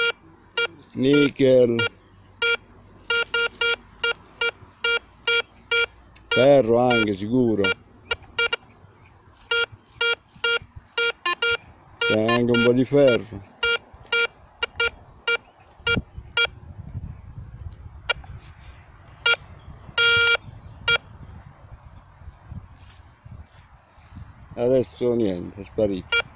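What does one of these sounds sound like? A metal detector warbles with a rising and falling tone.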